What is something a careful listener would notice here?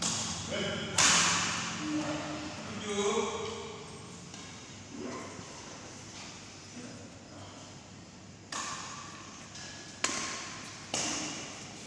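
Sneakers squeak and patter on a court floor.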